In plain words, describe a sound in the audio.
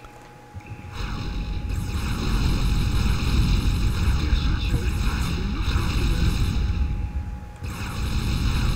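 Energy guns fire in a steady sizzling roar.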